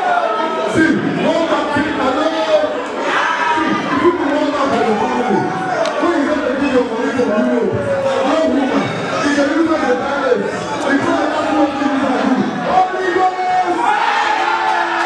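A crowd of young women sing loudly together.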